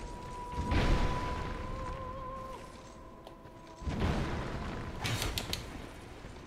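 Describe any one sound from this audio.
Weapons swing and strike in a close fight.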